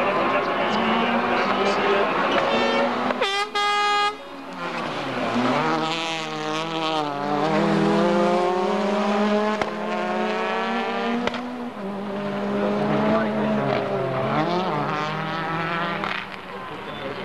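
A racing car engine roars loudly at high revs, shifting gears as the car speeds past.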